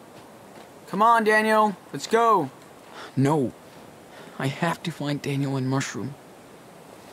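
A young man speaks calmly to himself, close by.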